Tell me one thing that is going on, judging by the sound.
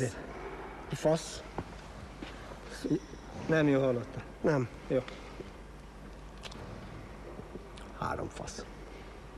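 A second man answers in a low voice up close.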